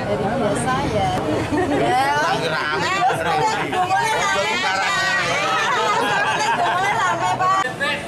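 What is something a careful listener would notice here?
A middle-aged man talks and laughs nearby.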